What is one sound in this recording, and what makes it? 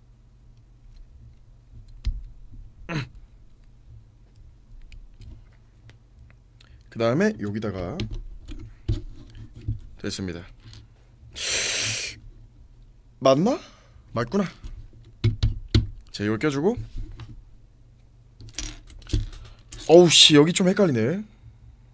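Small plastic bricks click together.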